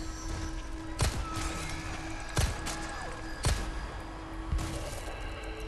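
Pistol shots ring out sharply, one after another, in a large echoing hall.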